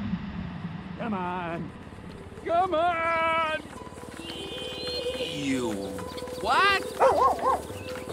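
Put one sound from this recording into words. A dog whines and yelps.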